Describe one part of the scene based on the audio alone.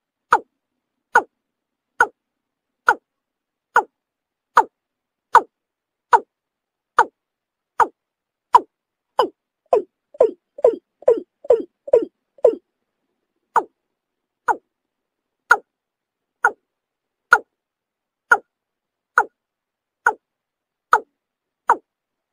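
A bird gives short, sharp calls over and over, faster for a moment in the middle.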